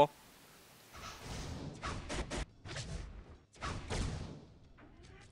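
Energy blasts whoosh and crackle in short bursts.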